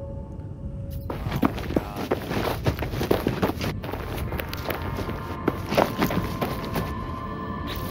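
Footsteps crunch quickly on the ground.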